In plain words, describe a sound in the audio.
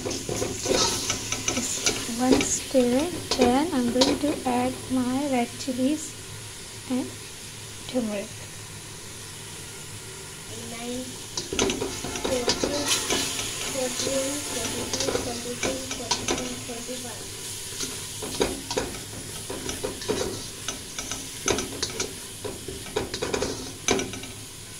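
Oil sizzles in a pan.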